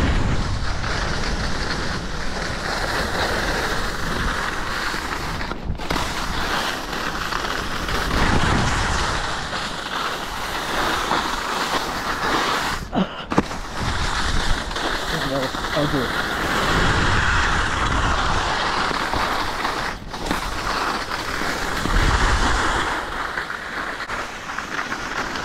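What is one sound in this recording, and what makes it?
Wind rushes past loudly, outdoors.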